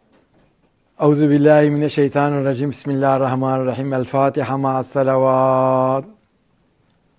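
An elderly man chants melodically into a close microphone.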